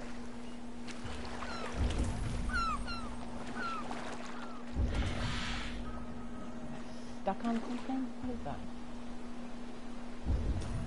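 Waves lap and slosh steadily around a small boat.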